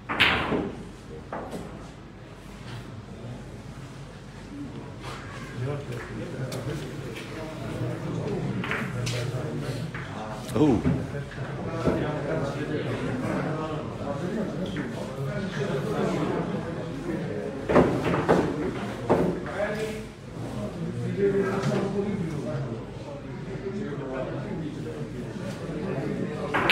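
Men talk in low voices nearby.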